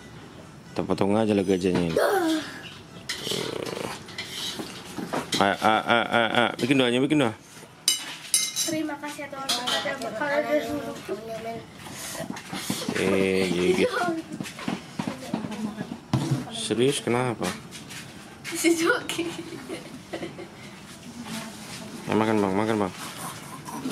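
A young girl speaks cheerfully close by.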